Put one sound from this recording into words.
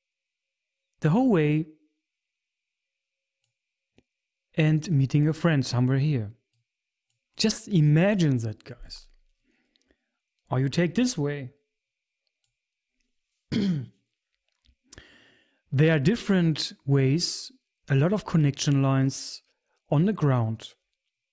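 A man talks with animation into a close microphone, in short bursts with pauses.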